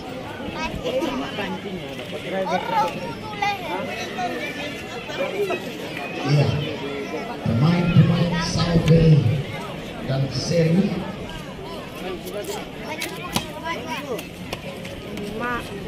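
A crowd of spectators chatters and shouts outdoors.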